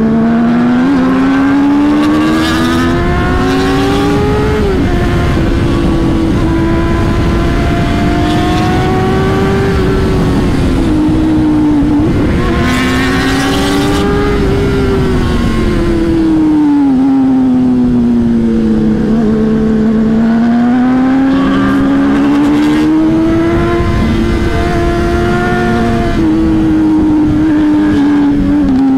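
A motorcycle engine drones steadily close by, its pitch rising and falling with the throttle.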